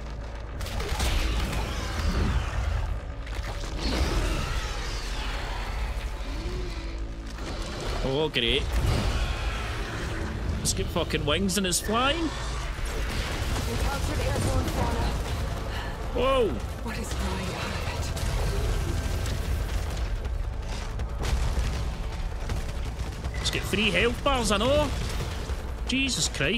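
A monstrous creature roars and shrieks.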